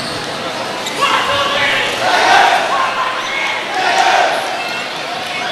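A crowd cheers in an echoing hall.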